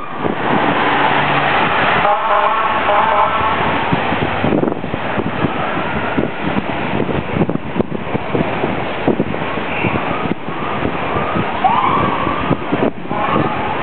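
Inline skate wheels roll and rumble on pavement close by.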